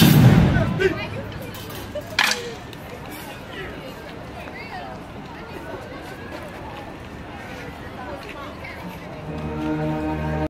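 A group of young people chatter quietly outdoors.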